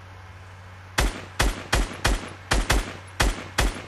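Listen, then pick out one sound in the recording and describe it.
A rifle fires a string of loud, sharp shots.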